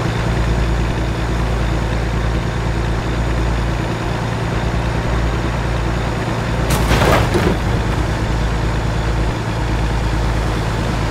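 Tyres roll along a highway.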